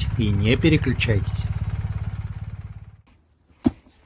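A motorcycle engine revs and idles, then dies away.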